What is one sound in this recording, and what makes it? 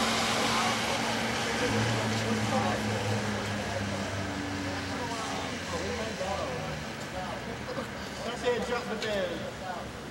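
A man talks quietly at a distance.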